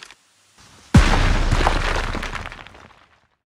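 A heavy metal crate crashes down and rumbles loudly, then fades.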